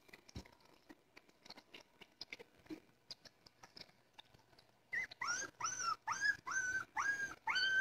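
Small puppies lap and slurp wetly.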